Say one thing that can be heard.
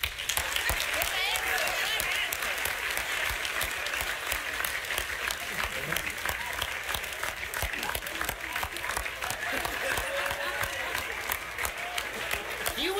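A group of people laugh and whoop nearby.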